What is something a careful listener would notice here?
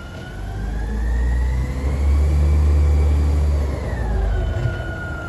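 A high whine from a garbage truck rises and falls as the truck gets closer.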